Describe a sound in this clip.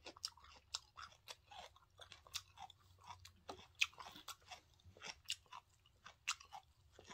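A young woman chews food loudly and wetly close to a microphone.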